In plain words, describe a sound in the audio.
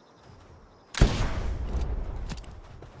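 A rifle fires with a loud bang.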